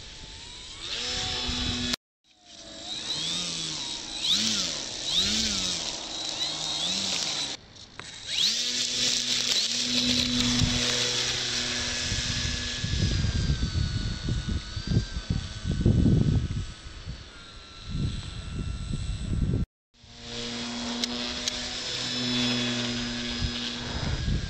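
A small model airplane engine buzzes loudly, revving up and down and changing pitch as the plane flies past.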